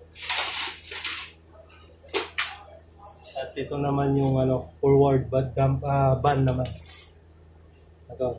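Metal parts clink as they are handled.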